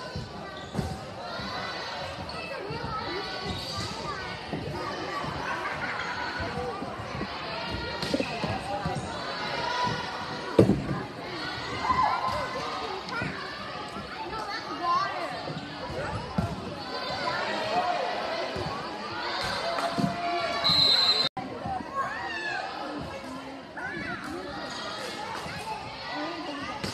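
A crowd chatters and cheers in an echoing gym.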